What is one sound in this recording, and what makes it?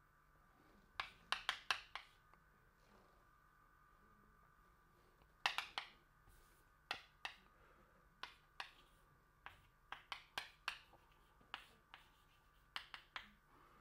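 Chalk taps and scrapes against a blackboard in short bursts.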